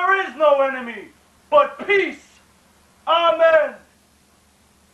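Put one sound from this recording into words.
A man calls out in strained, drawn-out cries close by.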